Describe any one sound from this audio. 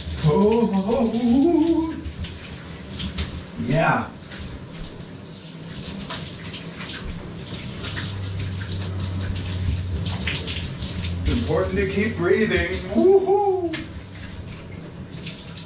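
Water from a shower sprays and splashes steadily.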